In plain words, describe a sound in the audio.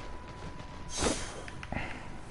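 A video game pickaxe strikes.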